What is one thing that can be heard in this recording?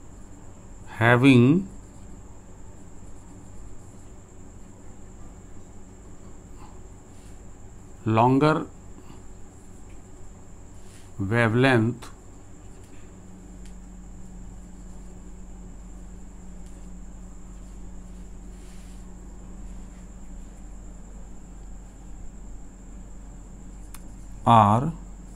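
An elderly man speaks in short explaining phrases.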